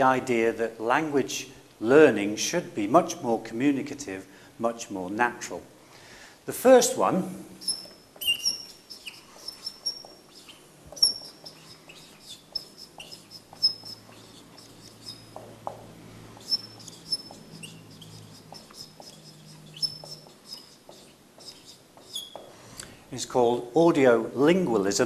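A man speaks calmly into a clip-on microphone.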